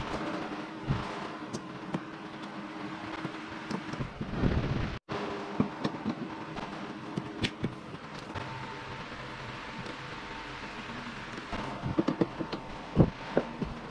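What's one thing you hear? A wiper arm clicks and knocks against a windshield.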